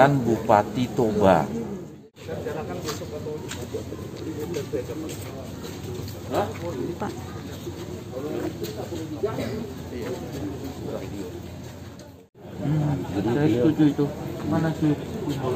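A man speaks close by, calmly.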